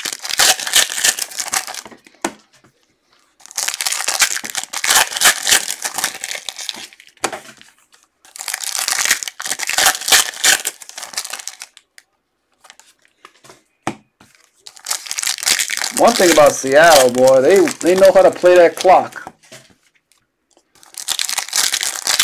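Foil card wrappers crinkle and tear as hands open them.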